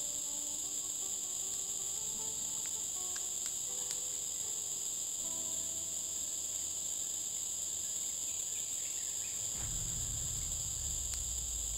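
A small smouldering fire crackles faintly.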